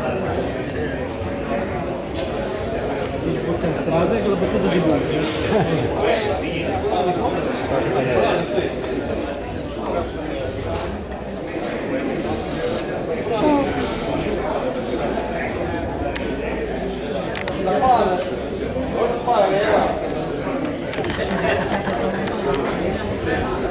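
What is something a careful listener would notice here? A crowd of men and women chatters in a large echoing hall.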